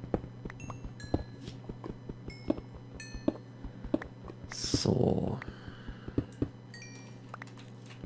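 A pickaxe taps and chips at stone blocks.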